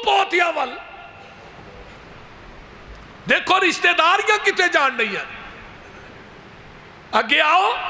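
A man preaches with fervour through a microphone, his voice echoing in pauses.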